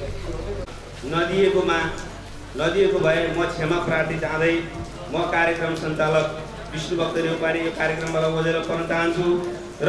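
Another man speaks into a microphone over a loudspeaker, with pauses.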